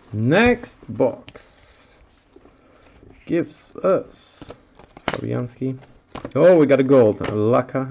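Trading cards slide and flick against each other.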